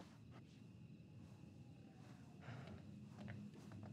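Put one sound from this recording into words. Footsteps scuff on a hard floor.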